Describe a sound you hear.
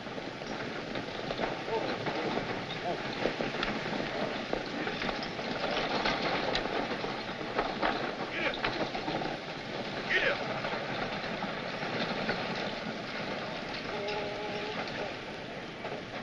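A crowd of men murmurs and calls out outdoors.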